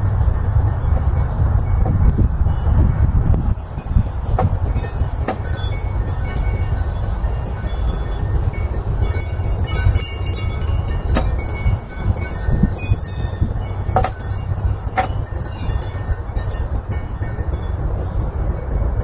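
Wind gusts steadily outdoors, rumbling and buffeting.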